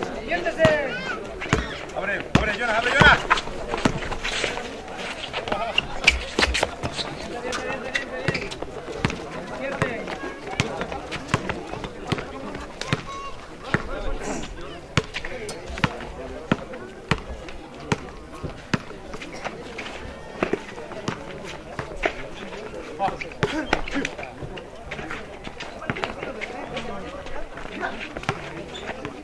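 Young men shout to each other during a game outdoors.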